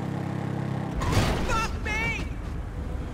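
A motorbike crashes into a car with a loud thud and clatter.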